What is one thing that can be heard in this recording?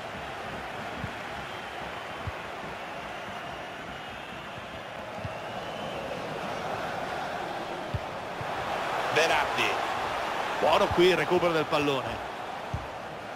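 A football is kicked with short dull thumps.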